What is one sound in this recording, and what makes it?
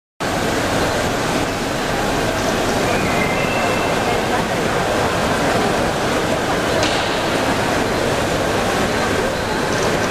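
Water splashes steadily in a fountain.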